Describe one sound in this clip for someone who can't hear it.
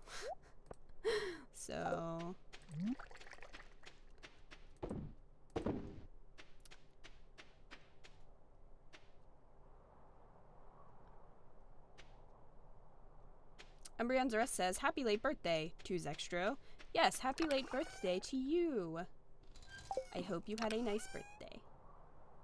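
A young woman talks animatedly into a microphone.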